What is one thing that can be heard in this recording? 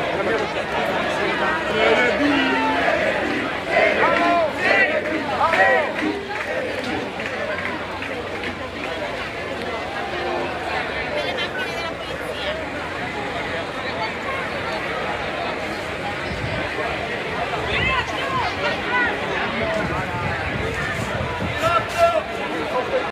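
Men in the crowd shout and sing with excitement close by.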